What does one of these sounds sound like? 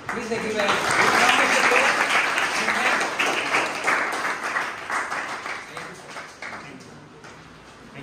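A room full of children claps loudly, and the applause slowly fades away.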